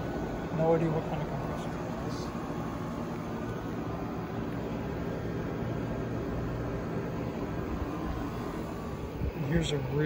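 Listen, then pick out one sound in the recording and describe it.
An air conditioning unit hums steadily outdoors.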